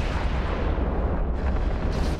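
Laser weapons fire with a low, rumbling hum.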